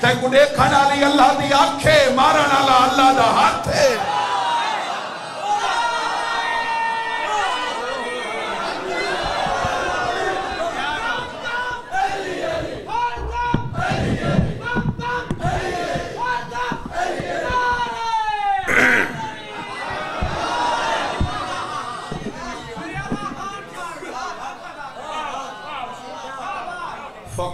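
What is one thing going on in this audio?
A young man recites with passion into a microphone, his voice loud over a loudspeaker.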